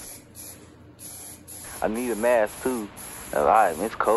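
An aerosol spray can hisses in short bursts.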